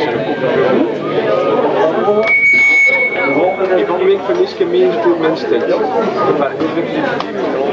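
A live rock band plays loudly.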